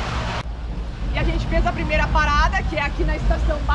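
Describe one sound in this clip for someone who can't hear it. A young woman speaks with animation outdoors.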